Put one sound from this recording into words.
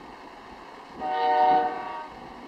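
A train horn blares loudly for a moment.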